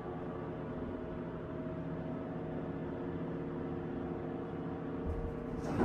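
A traction elevator car hums as it travels.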